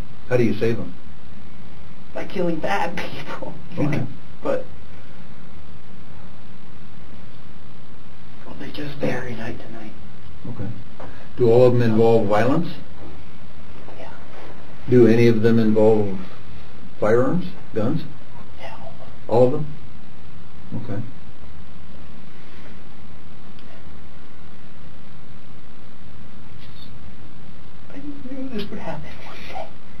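A young man speaks quietly and haltingly, with long pauses.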